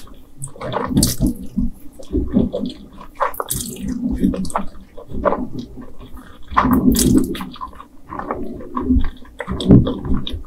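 A woman slurps noodles loudly and close up.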